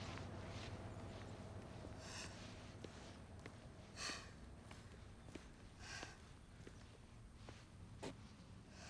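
Footsteps tap steadily on a paved road.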